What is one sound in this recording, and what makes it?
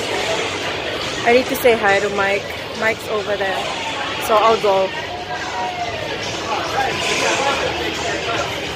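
A crowd murmurs and chatters throughout a large echoing arena.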